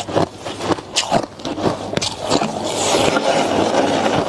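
Ice clatters and rustles as hands stir it.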